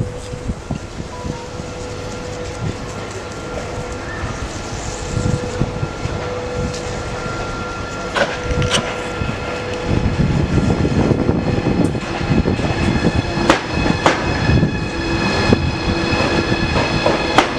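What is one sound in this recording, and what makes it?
An electric train rolls in and passes close by, its wheels rumbling and clattering on the rails.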